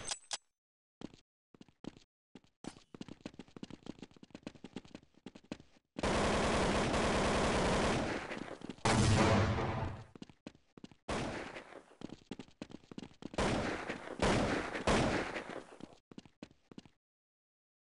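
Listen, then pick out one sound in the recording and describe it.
Footsteps tap on stone at a steady walking pace.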